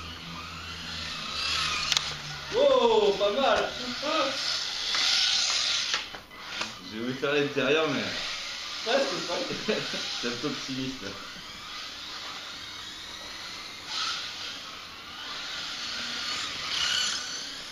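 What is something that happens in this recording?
Small electric model cars whine past at speed.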